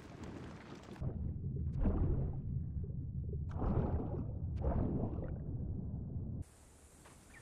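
Water gurgles and bubbles underwater.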